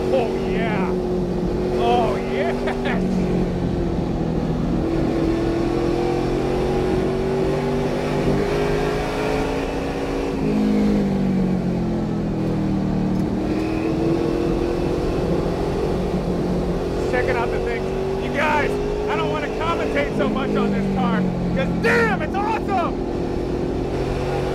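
A race car engine roars loudly, its pitch rising and falling as it revs through the gears.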